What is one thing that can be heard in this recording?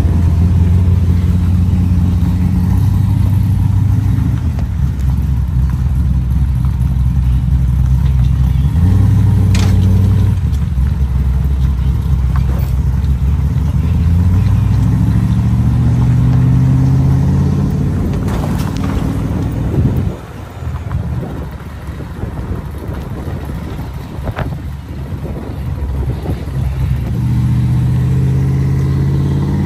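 A car engine hums and rises and falls in pitch as the car speeds up and slows down.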